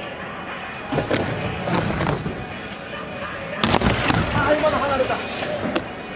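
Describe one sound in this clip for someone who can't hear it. Skateboard wheels roll and rumble across a ramp.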